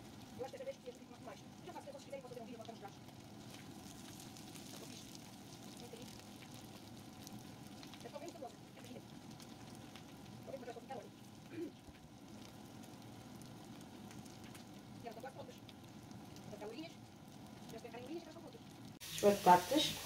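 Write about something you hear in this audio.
A slotted spatula scrapes and taps against a frying pan.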